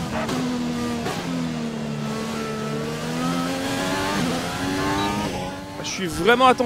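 A racing car engine whines loudly, its pitch shifting up and down through the gears.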